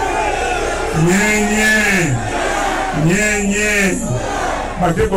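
A man calls out loudly and at length through a loudspeaker.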